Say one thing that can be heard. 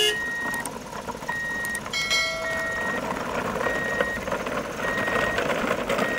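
Plastic toy truck wheels rattle over a wooden ramp.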